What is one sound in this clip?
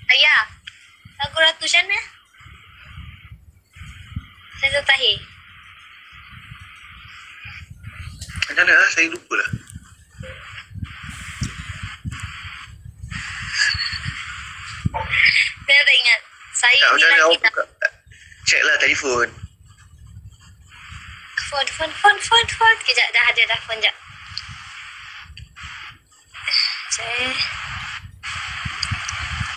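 A young woman sings over a phone's microphone.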